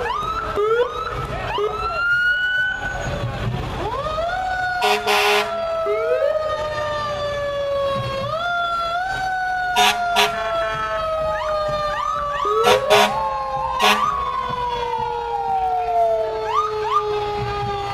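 Engines of emergency vehicles rumble slowly past.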